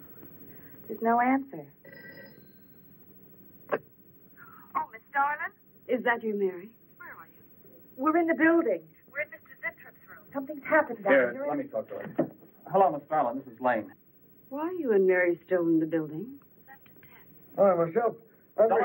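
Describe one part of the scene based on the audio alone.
A young woman speaks anxiously into a telephone.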